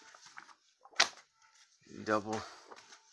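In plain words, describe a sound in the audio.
A comic book lands with a soft thump.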